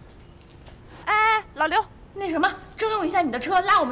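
A young woman speaks with animation and emphasis.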